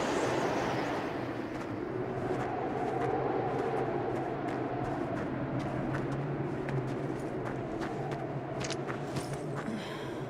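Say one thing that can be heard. Boots crunch through deep snow.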